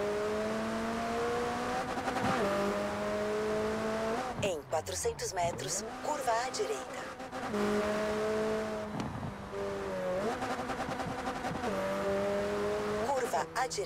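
A sports car engine roars at high speed, its pitch rising and dropping with gear shifts.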